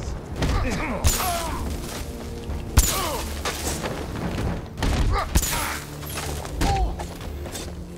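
Electricity crackles and zaps in short bursts.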